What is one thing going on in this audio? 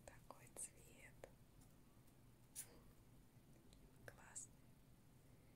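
Pet rats squeak softly up close.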